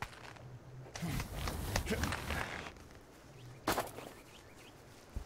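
Hands pull on a rope while climbing.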